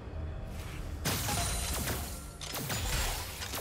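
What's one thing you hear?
Magic blasts and clashing bursts crackle loudly in a fight.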